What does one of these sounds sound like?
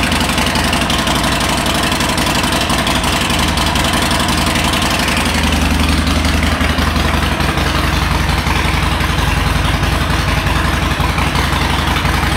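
A motorcycle engine idles with a loud, steady rumbling exhaust close by.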